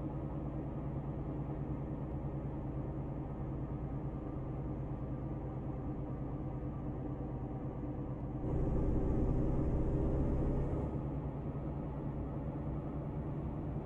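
A truck's diesel engine rumbles steadily, growing louder for a moment.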